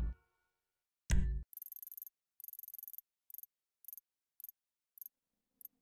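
A menu blips and clicks in quick beeps.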